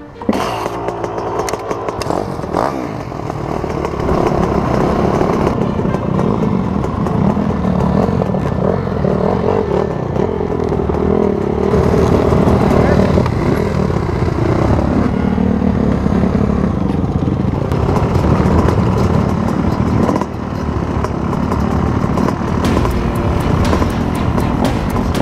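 A dirt bike engine idles and revs close by.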